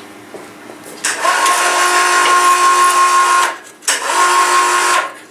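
An electric hoist motor whines loudly in two long bursts.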